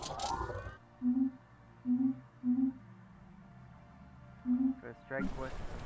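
Short electronic interface chimes sound several times.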